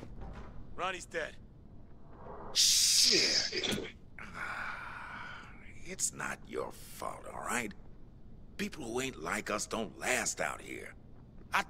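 A man's voice speaks calmly from the game.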